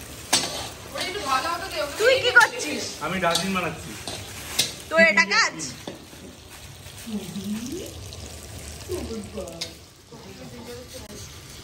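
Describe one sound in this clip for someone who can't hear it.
A spatula scrapes food in a metal pan.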